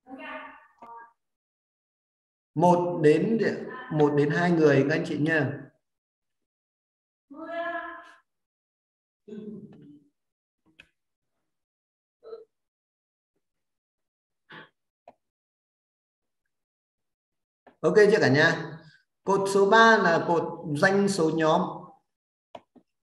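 A man speaks with animation through an online call, in bursts with pauses.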